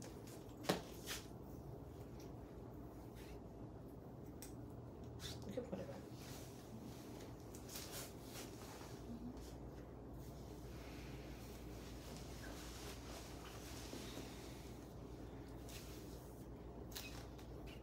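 A comb brushes softly through long hair.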